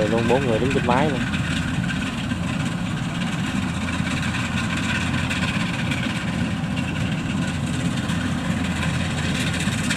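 Cutting blades of a harvesting machine clatter through rice stalks.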